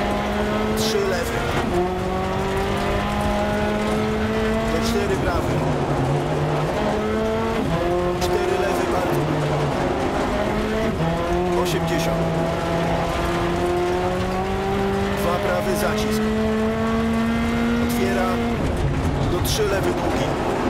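Tyres crunch and skid over gravel.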